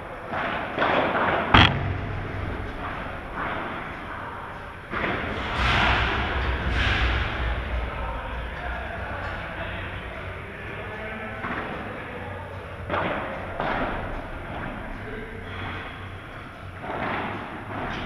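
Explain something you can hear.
A ball bounces on a hard court.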